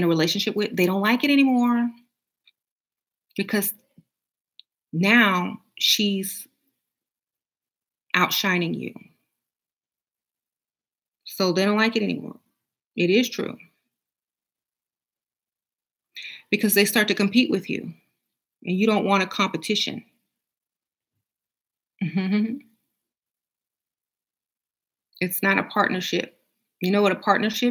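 A woman speaks calmly and close to a microphone, in short phrases with pauses.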